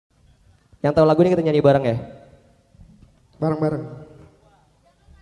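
A young man sings loudly into a microphone, heard through loudspeakers.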